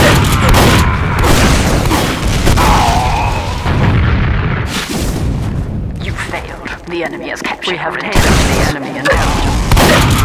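Shotgun blasts go off again and again.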